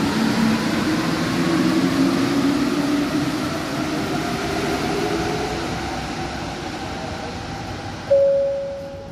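A metro train rumbles out of a station and fades away.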